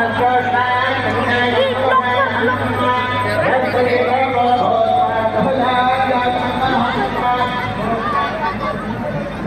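Loud music with singing plays over loudspeakers outdoors.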